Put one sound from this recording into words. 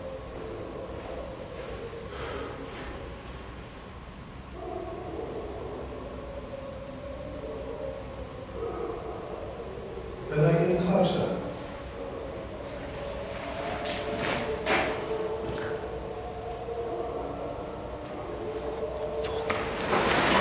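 A man speaks quietly and tensely close by.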